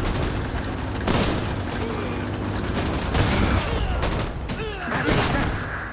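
Game battle sounds of gunshots and impacts crackle in quick bursts.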